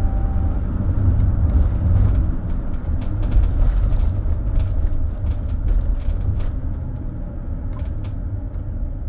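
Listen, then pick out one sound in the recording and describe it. A bus rattles and clicks over bumps.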